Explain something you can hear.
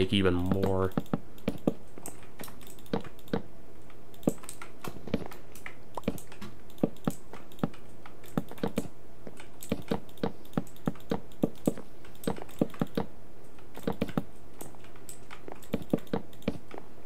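Wooden blocks knock sharply as they are placed and broken, in quick irregular taps.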